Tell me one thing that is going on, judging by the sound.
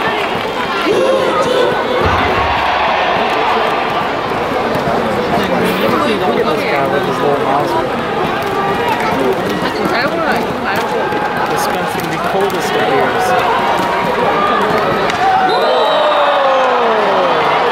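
A large crowd chants and cheers loudly in an open stadium.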